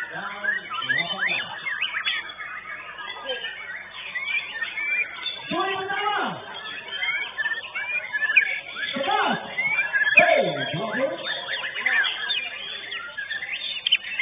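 A crowd of people chatters and calls out in the background.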